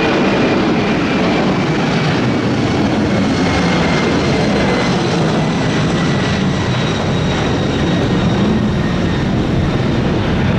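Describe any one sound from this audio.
A jet airliner's engines roar loudly as it climbs away.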